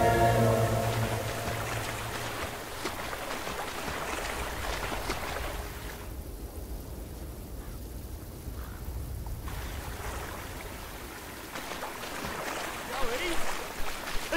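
Water splashes as a figure swims.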